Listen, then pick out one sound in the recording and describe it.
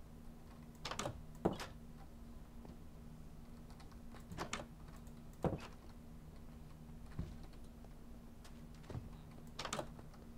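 A wooden door clicks open and shut.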